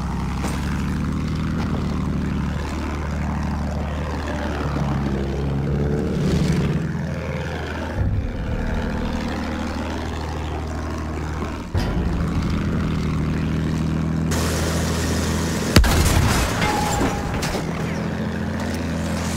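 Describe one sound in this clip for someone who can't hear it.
A propeller plane engine drones steadily close by.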